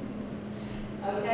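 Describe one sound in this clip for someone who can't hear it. A woman speaks to a group in a large echoing room.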